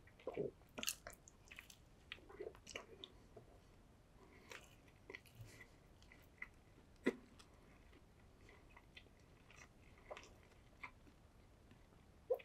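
A man chews and smacks his lips wetly, very close to a microphone.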